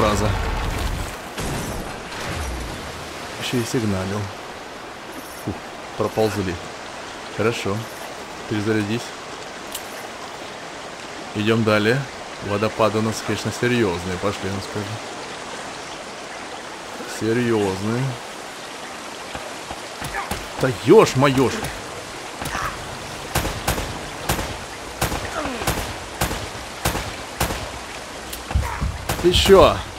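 Waterfalls rush and splash steadily.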